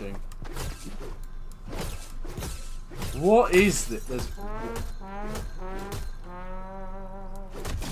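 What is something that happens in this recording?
A pickaxe strikes repeatedly in a video game.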